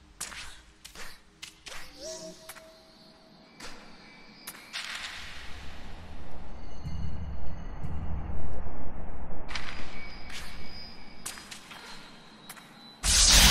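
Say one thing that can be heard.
Menu sounds in a game click and chime.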